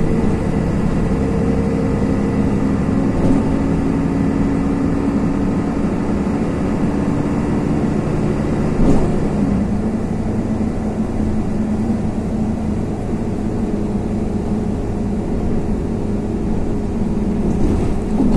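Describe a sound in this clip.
Tyres hiss over a wet road.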